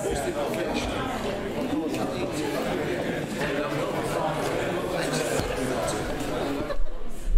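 Many men and women chatter at once in a room.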